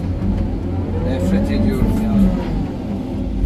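A hydraulic system whines as the digger arm moves.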